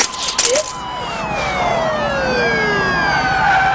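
Police sirens wail and sweep in pitch.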